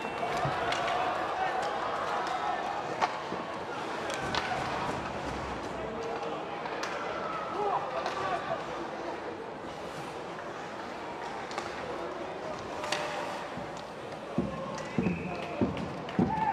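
Skate blades scrape and hiss across the ice.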